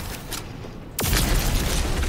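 A gun fires with a loud blast.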